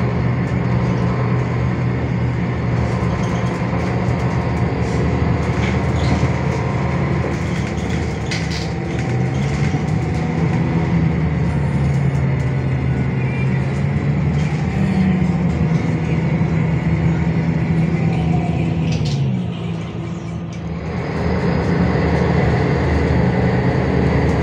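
A bus engine hums and drones steadily, rising and falling in pitch as the bus speeds up and slows.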